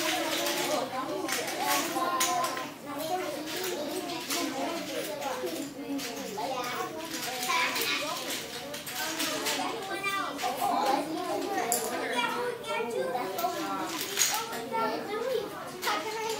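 Young children chatter and talk nearby.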